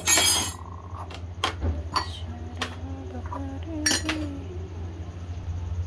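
Ceramic mugs clink against a tray.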